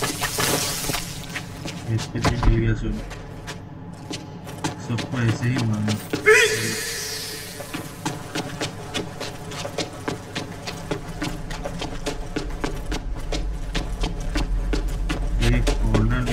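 Footsteps tap across a hard tiled floor.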